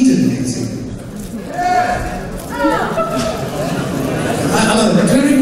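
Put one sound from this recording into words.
A live band plays loudly through loudspeakers.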